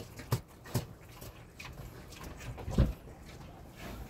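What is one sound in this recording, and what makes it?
A pig snuffles and slurps at a trough close by.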